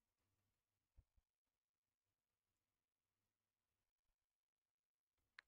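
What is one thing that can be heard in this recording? A soft digital click sounds as a card is played.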